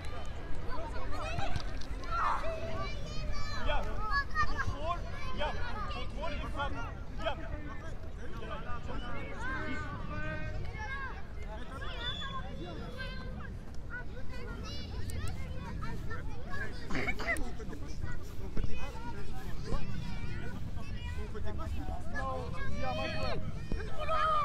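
Young children chatter and call out outdoors.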